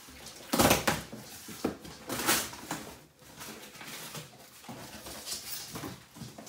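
Cardboard boxes rustle and thump as a person unpacks them.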